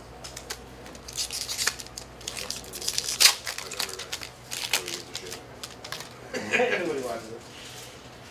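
Playing cards shuffle and flick against each other.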